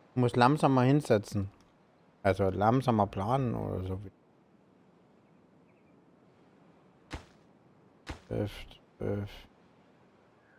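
A middle-aged man talks with animation into a close microphone, in short bursts.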